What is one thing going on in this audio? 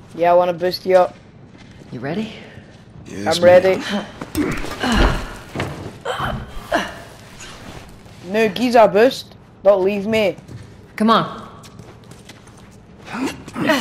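A man speaks in short phrases, close by.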